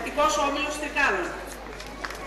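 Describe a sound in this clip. A woman speaks through a loudspeaker in a large open space.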